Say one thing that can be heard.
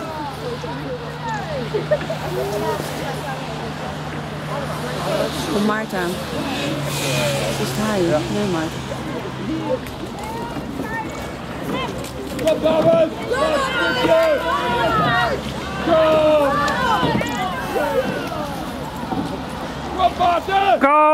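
Oars dip and splash in water.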